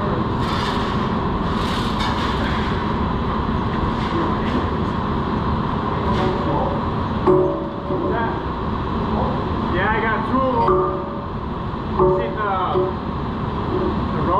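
A steel beam hanging on chains clanks and scrapes.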